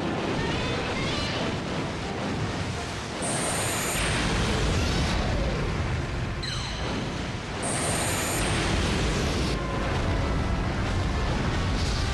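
Water splashes and churns as a giant creature wades.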